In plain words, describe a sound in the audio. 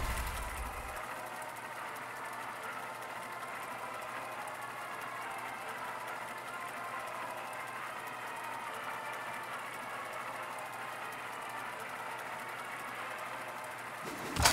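A steady, shimmering hum loops on and on.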